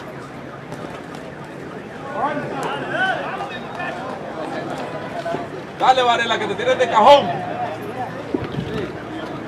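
A crowd murmurs throughout in a large hall.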